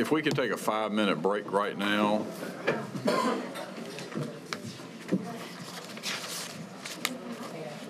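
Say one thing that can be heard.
People murmur and chat in the background.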